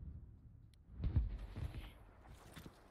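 A heavy explosion booms close by and rumbles.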